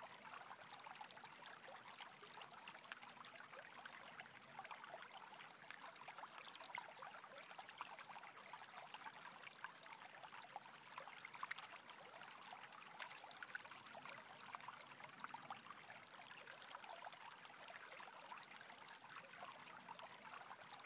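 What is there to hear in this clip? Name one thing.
A stream rushes steadily over rocks.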